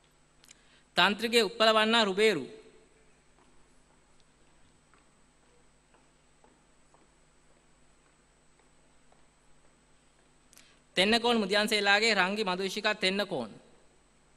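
A man reads out over a loudspeaker in a large hall.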